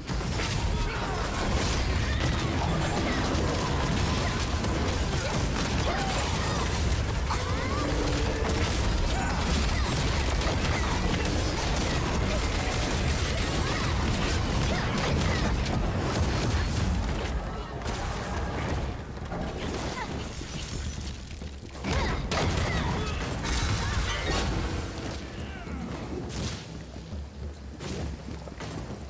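Magic blasts and explosions crash and boom again and again.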